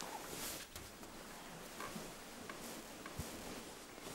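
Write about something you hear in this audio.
A duvet rustles as it is pulled over a bed.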